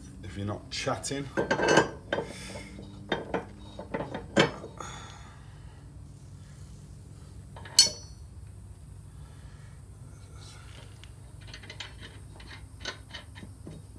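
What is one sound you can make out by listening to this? Metal parts clink and knock as a blade is fitted.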